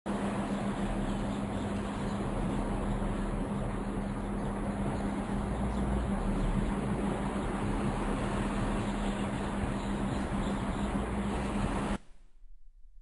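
Ocean waves crash and roll onto a shore.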